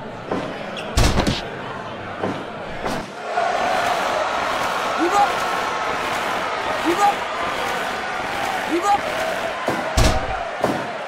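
A heavy body thuds onto a mat.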